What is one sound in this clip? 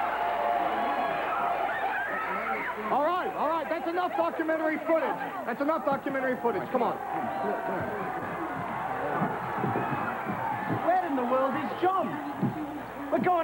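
A crowd of young women scream and shout excitedly close by.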